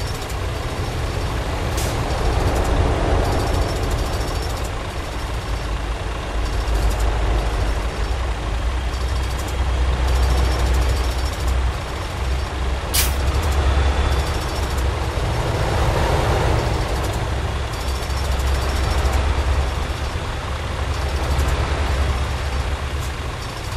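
Trucks and cars rush past one after another.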